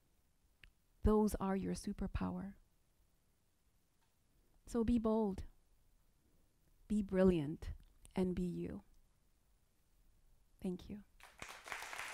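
A young woman speaks calmly into a microphone, in short phrases with pauses.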